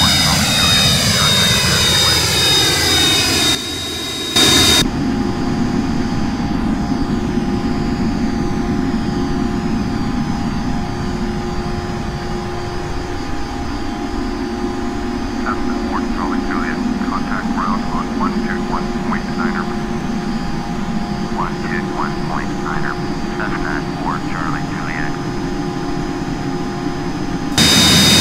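A jet engine whines and hums steadily.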